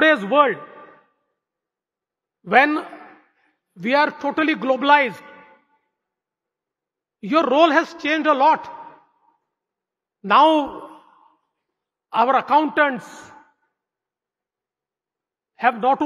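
A middle-aged man speaks emphatically into a microphone, heard through loudspeakers, with pauses between phrases.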